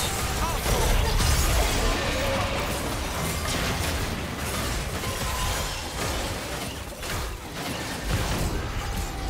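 Magic blasts crackle and boom during a fierce fight.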